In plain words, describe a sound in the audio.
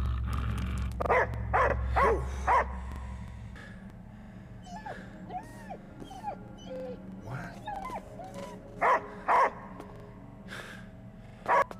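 A large dog barks loudly and sharply.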